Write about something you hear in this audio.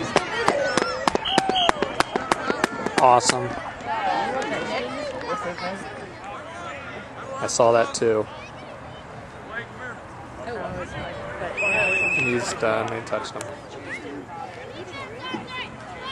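Children shout and call out during a football game outdoors.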